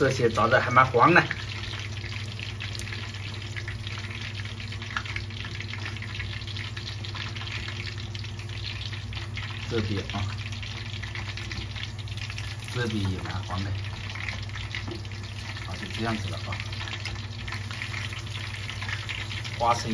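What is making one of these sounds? Hot oil bubbles and sizzles steadily in a pot.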